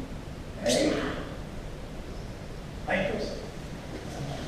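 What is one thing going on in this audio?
A man shouts sharply as he strikes, echoing in a large hall.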